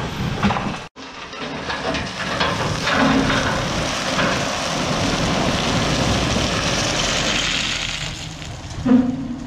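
Rubble and stones pour out of a tipping trailer with a rushing clatter.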